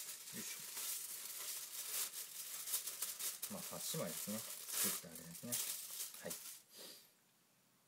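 Aluminium foil crinkles.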